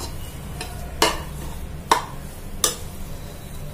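A spatula scrapes and knocks against a metal pot.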